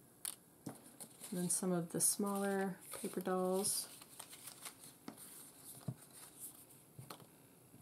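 Paper cutouts rustle and flap between hands.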